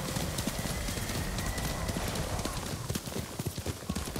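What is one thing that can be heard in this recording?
Tall grass and plants rustle as a horse pushes through them.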